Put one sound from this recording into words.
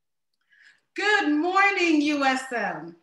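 A woman speaks clearly through an online call.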